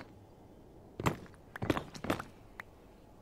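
A block cracks and breaks with a crunch.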